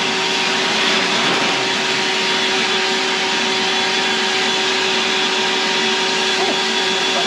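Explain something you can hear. A vacuum cleaner runs with a steady whirring roar.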